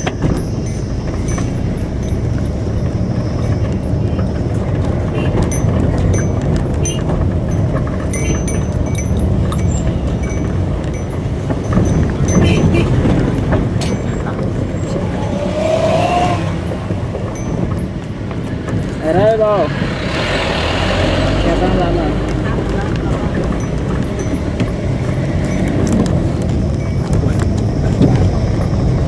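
Tyres rumble over a rough, patched road.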